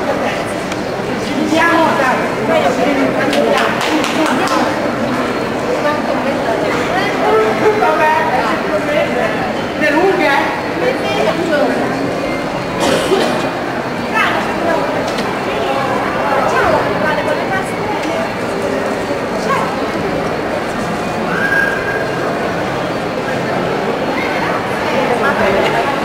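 Young women chat and greet each other with animation close by.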